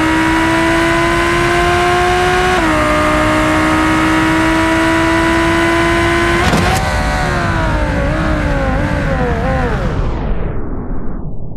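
A car engine roars at high speed, with a gear change, then winds down.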